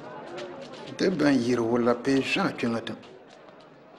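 An elderly man speaks firmly.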